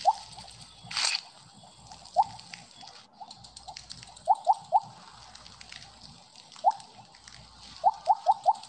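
A video game plays short rising blips.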